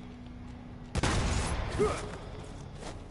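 A heavy rumbling crash of rock and debris bursts out suddenly.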